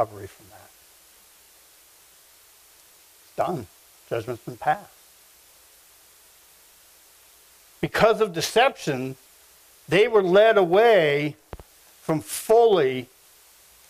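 A middle-aged man speaks slowly and deliberately in a hall, with pauses between phrases.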